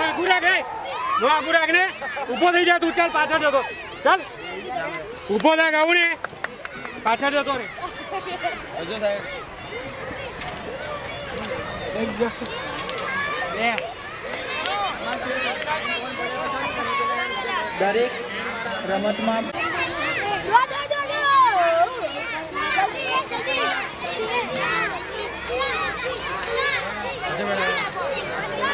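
Children shout and chatter outdoors.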